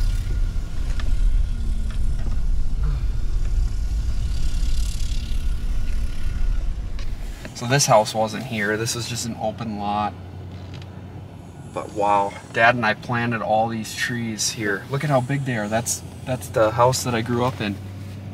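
A vehicle's engine hums low and steady inside a cab.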